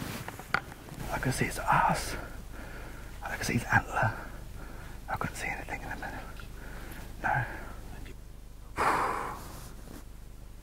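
A man speaks quietly and close by, in a hushed voice.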